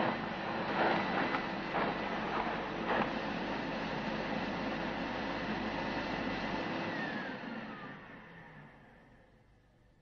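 A vacuum cleaner runs with a loud steady roar, then winds down and fades.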